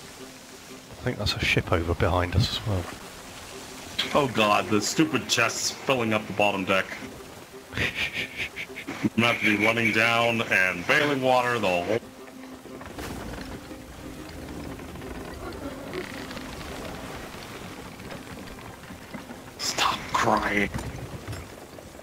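Waves wash and slosh against a wooden ship's hull.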